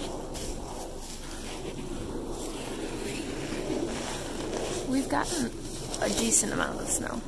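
A gloved hand scrapes and crunches through snow.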